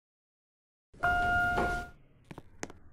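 An elevator chime rings out.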